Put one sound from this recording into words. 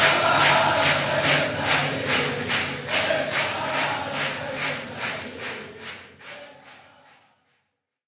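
A young boy sings loudly through a microphone.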